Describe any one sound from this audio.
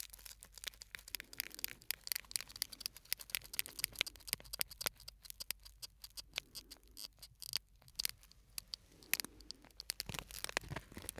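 Foil crinkles and crackles close to a microphone.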